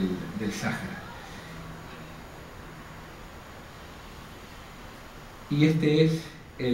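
A middle-aged man speaks calmly into a microphone in an echoing room.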